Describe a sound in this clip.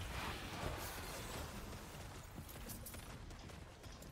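Magic spells and blasts crackle and boom in a video game.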